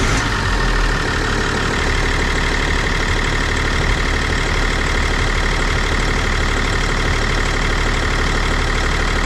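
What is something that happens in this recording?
A diesel engine runs loudly and steadily close by, with a rattling hum and a high whine.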